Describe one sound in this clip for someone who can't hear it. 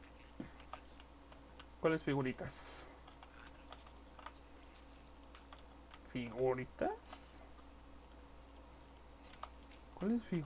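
Blocks crunch and crumble as they are broken, in short bursts.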